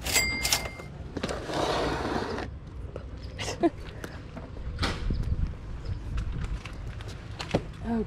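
Cardboard boxes knock and slide against each other as they are handled.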